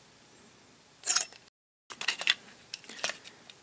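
Plastic parts click and rattle close by.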